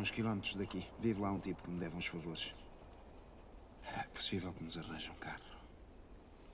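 A man speaks calmly and low, close by.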